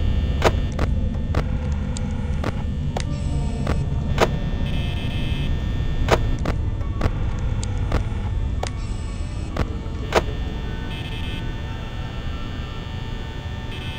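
A desk fan hums steadily.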